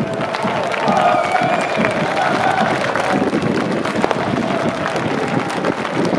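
A large crowd claps hands.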